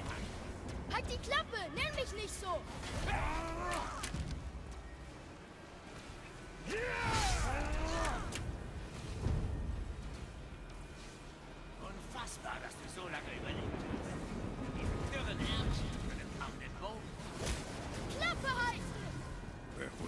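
A boy shouts and speaks with animation, close up.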